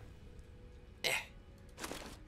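A game menu opens with a short click.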